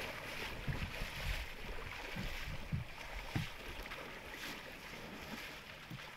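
A bear splashes through shallow water.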